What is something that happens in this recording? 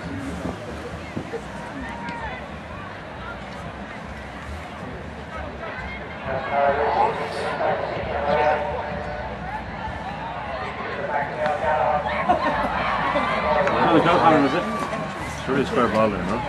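A crowd of spectators murmurs and chatters outdoors.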